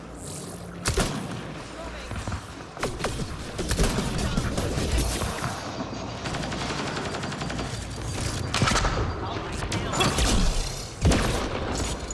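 Gunshots crack sharply, one at a time.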